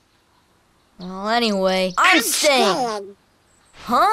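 A duck-like cartoon voice squawks loudly and excitedly.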